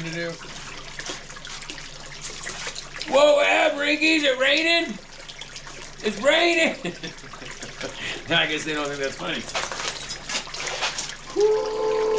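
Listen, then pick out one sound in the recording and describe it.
Water pours and splashes steadily down a sluice into a tub.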